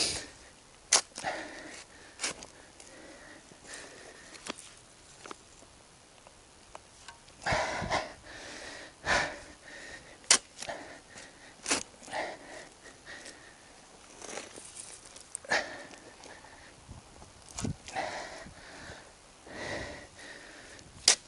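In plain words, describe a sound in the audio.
A shovel blade clinks against stones.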